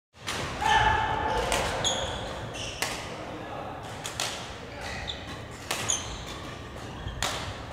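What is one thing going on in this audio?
Shuttlecocks are struck with rackets in sharp pops, in a large echoing hall.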